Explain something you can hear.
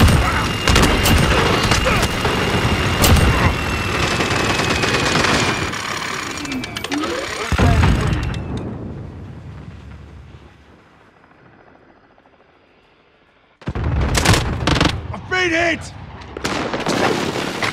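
A heavy gun fires in rapid, loud bursts.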